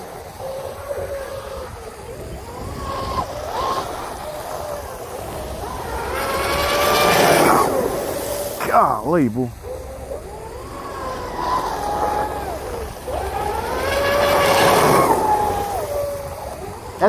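Water sprays and hisses behind a fast boat.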